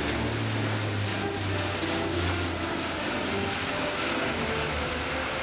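A propeller aircraft roars loudly overhead with a deep droning hum.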